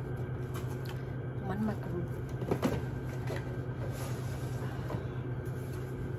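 A cardboard box knocks and rustles against a counter.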